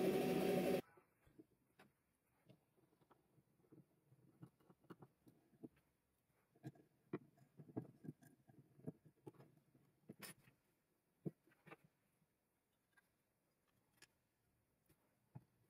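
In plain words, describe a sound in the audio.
Small clicks and taps sound as hands fit a handle onto a knife.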